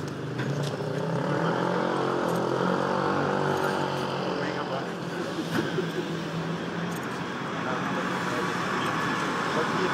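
A bus engine idles and rumbles close by.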